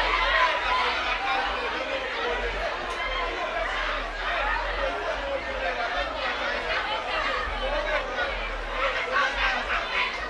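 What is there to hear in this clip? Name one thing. A young man calls out to the crowd through a microphone and loudspeakers.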